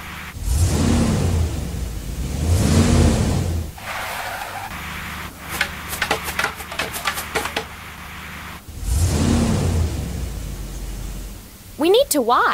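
A cartoon truck engine revs and drives along.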